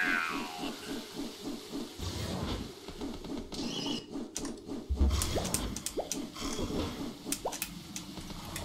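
Laser blasts zap again and again.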